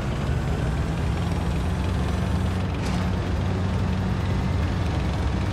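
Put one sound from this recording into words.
A tank engine rumbles loudly as the tank drives.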